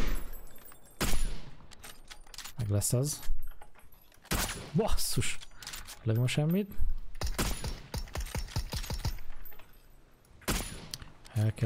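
Rifle shots crack sharply now and then.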